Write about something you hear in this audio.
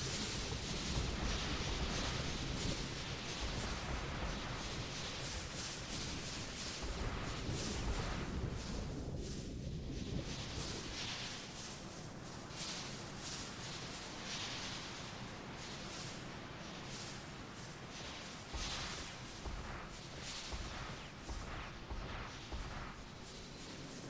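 Water gushes and splashes steadily.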